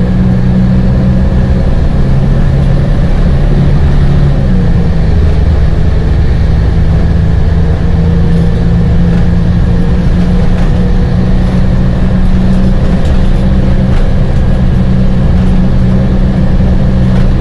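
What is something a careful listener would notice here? A bus engine hums steadily from inside the bus.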